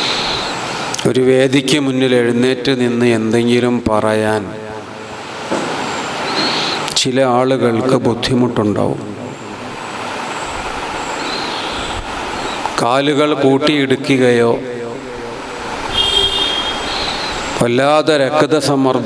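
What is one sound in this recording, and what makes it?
A man speaks forcefully into a microphone through loudspeakers, in an echoing hall, with long pauses.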